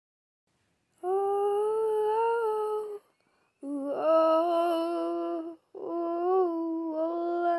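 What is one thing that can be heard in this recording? A young woman sings into a microphone in long, held notes.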